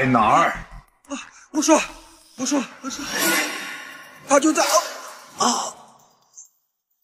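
A young man cries out and shouts in pain, close by.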